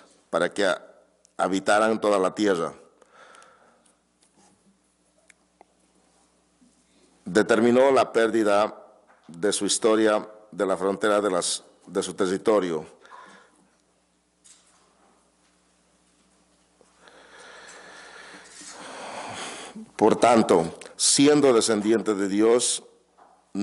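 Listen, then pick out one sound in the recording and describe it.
A man reads aloud into a microphone, slowly, with pauses.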